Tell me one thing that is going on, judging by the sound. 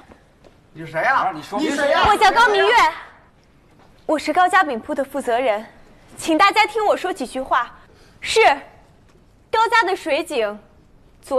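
A young woman speaks out in a raised voice to a crowd.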